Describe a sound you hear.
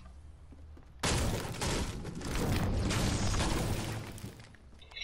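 A pickaxe strikes wood with loud repeated thuds.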